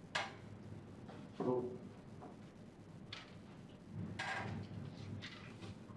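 Paper slides and rustles across a surface.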